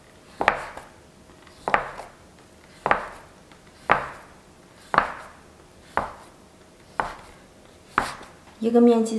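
A knife chops down sharply on a wooden board at a steady pace.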